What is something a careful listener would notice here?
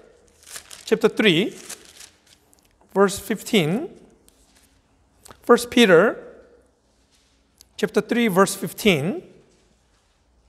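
A middle-aged man speaks calmly and clearly into a close microphone, in short phrases with pauses.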